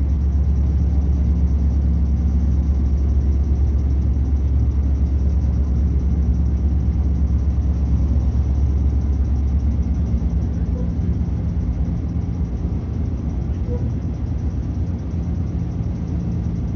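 A train rumbles steadily along the tracks, heard from inside a carriage.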